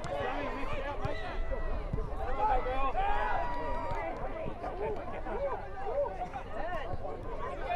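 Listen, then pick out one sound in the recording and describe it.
Men shout and call to each other outdoors on an open field.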